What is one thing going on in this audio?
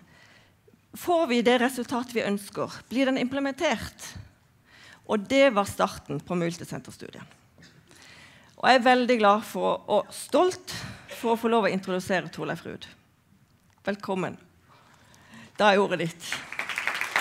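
A woman speaks with animation into a microphone in a large hall.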